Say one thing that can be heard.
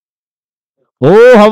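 A man shouts loudly outdoors.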